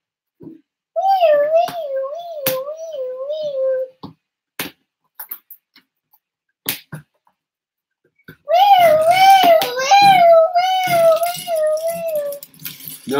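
A young child sings in a wavering voice.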